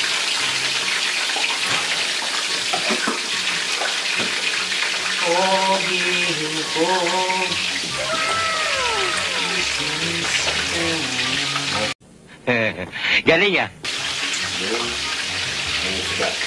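Food sizzles and crackles in a hot pan.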